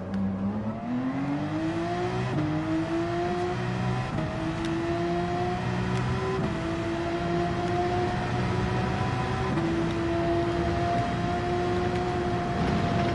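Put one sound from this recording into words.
A racing car engine drones steadily at high speed.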